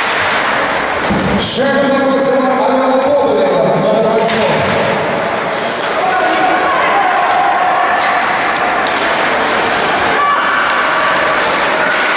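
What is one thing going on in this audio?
Ice skates scrape and swish across an ice rink in a large echoing hall.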